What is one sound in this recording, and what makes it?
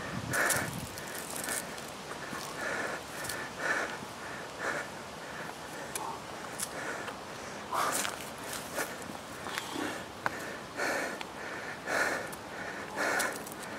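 Footsteps thud on concrete steps at a steady pace.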